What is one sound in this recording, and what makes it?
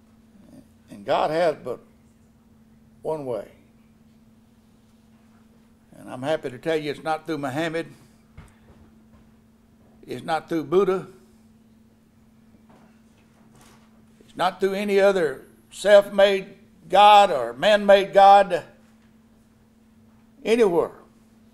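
An elderly man speaks slowly through a microphone, with pauses between phrases.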